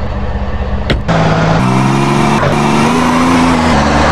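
A car engine revs as the car pulls away.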